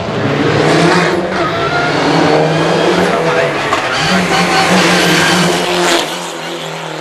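A rally car engine roars loudly as the car speeds uphill toward the listener and passes close by.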